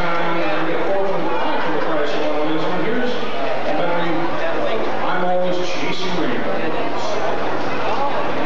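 A man sings into a microphone over a loudspeaker.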